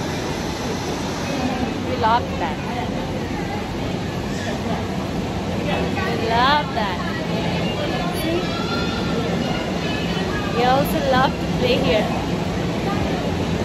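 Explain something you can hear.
People chatter in the background of a large indoor room.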